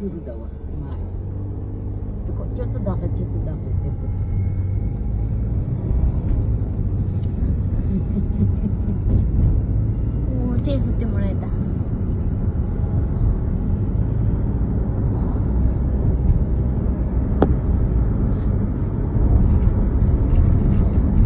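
Car tyres roll on a road.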